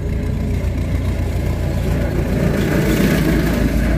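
A trailer rattles over a bumpy dirt road.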